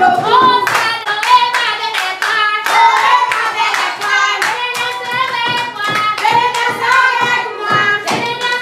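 A woman sings along with the children.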